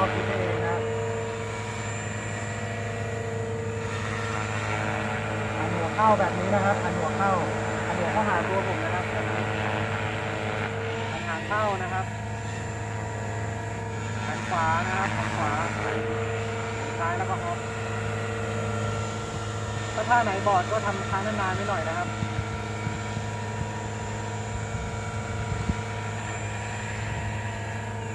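A model helicopter's motor whines steadily as it hovers and flies nearby, outdoors.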